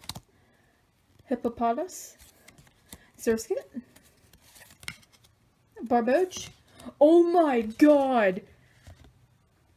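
Playing cards rustle and slide against each other as they are handled.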